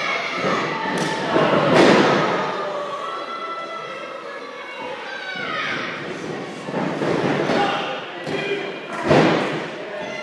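Bodies slam onto a wrestling ring's canvas with loud thuds.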